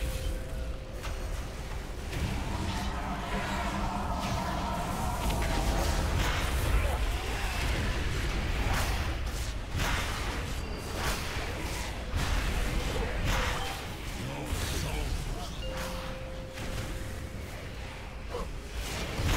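Spell effects whoosh and crackle in a busy fight.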